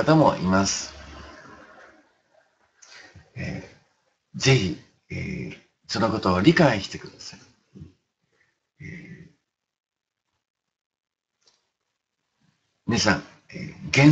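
An elderly man speaks calmly and close up, in short phrases with pauses.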